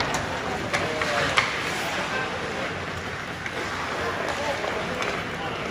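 Ice skates scrape and carve across the ice.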